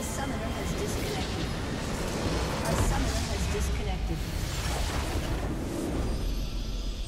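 A large video game structure explodes with a deep boom.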